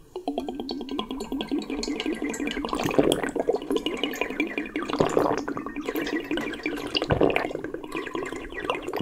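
A man slurps and gulps a drink up close.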